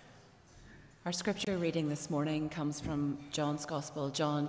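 A woman reads aloud clearly through a microphone.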